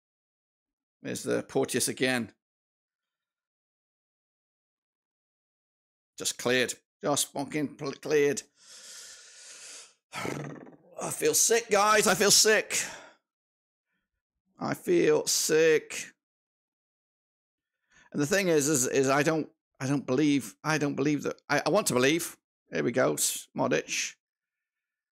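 A middle-aged man talks with animation into a close microphone, in short bursts with pauses.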